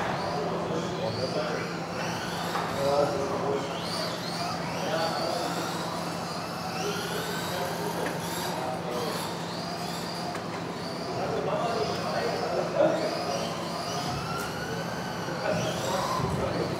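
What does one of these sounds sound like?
Electric radio-controlled buggies race around an indoor track, motors whining as they speed up and slow down in a large echoing hall.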